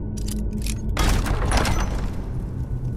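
A heavy iron door grinds open.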